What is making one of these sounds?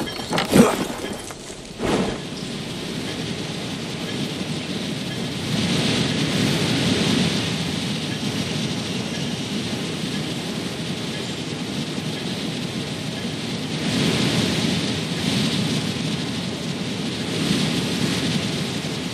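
Wind rushes loudly past during a fast glide through the air, swelling now and then.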